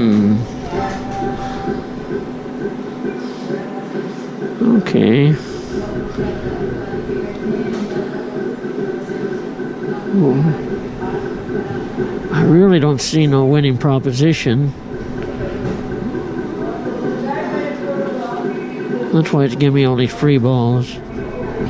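A gaming machine plays looping electronic music and chimes.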